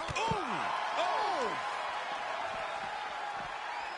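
A body slams heavily onto a table with a loud thud.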